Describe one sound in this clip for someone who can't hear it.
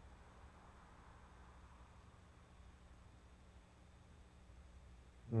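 A man speaks softly and calmly nearby.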